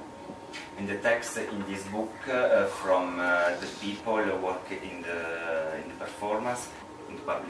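A man speaks calmly and close by.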